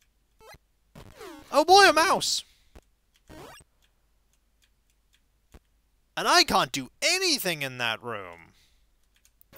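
Retro video game sound effects chirp and sweep up and down in pitch.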